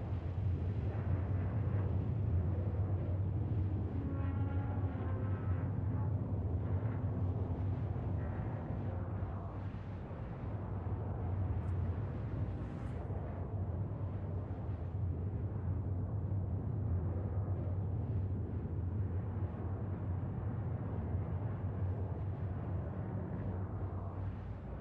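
A spacecraft engine hums low and steadily.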